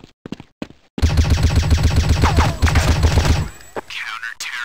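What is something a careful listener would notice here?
A rifle fires rapid bursts.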